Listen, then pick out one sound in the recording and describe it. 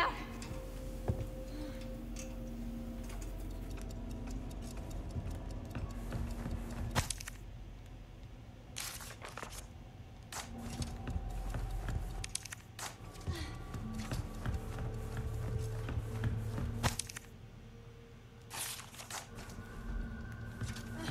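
Footsteps walk slowly across a wooden floor.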